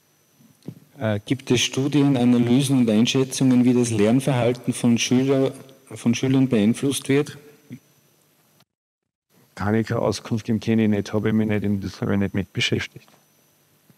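A man speaks calmly into a microphone over a loudspeaker in a large hall.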